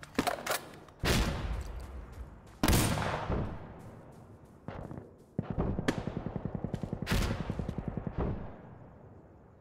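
Loud rifle shots crack and echo away.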